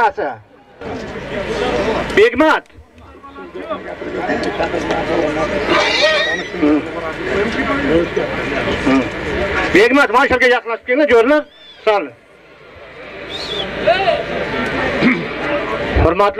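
A crowd of men murmurs and calls out outdoors.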